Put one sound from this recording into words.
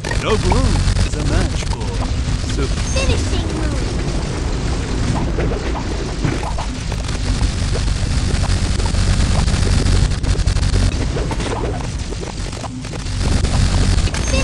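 Video game fireballs whoosh and burst in quick succession.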